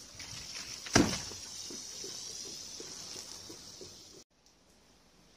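Water gushes out of a tipped barrel onto the ground.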